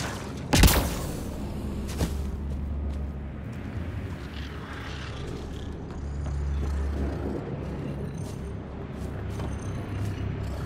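Heavy armored footsteps crunch over rocky ground.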